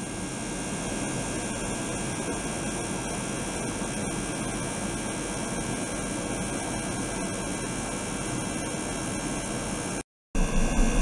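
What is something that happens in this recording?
Water bubbles and churns in a tank.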